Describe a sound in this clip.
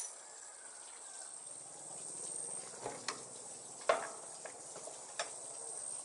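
Walnuts clatter as they are poured into a machine.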